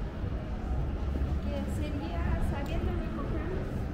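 Footsteps tap on a stone walkway as people walk past.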